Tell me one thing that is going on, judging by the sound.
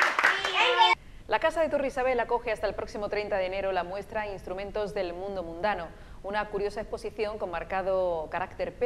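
A woman reads out news calmly into a microphone.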